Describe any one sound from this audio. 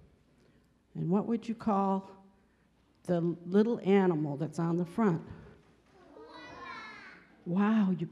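A woman speaks warmly and with animation in a large hall.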